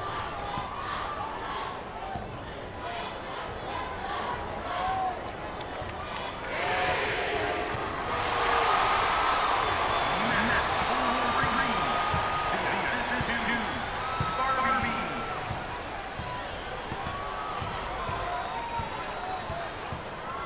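A crowd roars and cheers in a large echoing arena.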